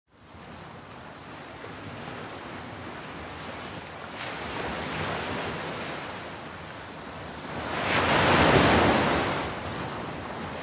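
Gentle waves lap and wash against a shore.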